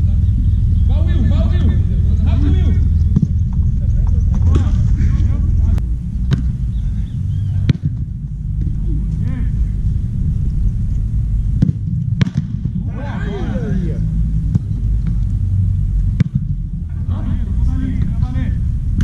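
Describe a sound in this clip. Children shout and call out in the distance.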